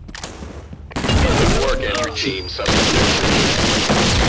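A rifle fires a rapid burst at close range.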